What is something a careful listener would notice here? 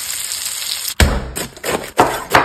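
A knife cuts through crisp lettuce with a crunch.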